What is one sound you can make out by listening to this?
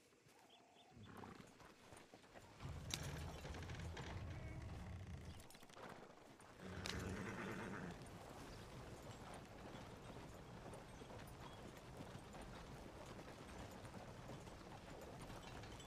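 Horse hooves clop steadily on the dirt.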